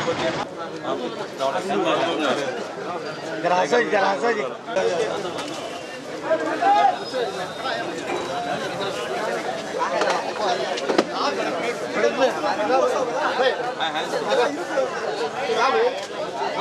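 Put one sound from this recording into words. A crowd of men chatter and talk over one another nearby, outdoors.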